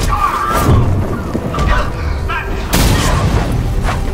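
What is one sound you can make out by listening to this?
Electricity zaps and crackles in sharp bursts.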